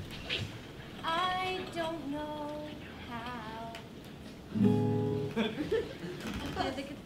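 A young woman strums an acoustic guitar.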